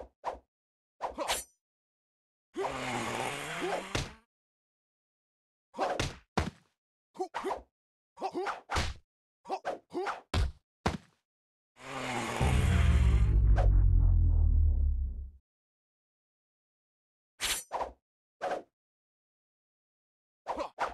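Game sword blades clash and swish in quick bursts.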